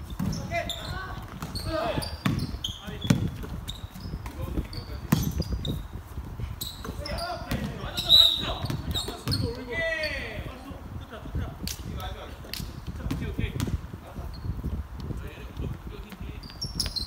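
Young men call out to each other during a basketball game.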